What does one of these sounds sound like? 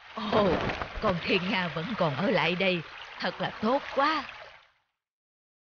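An elderly woman speaks with animation.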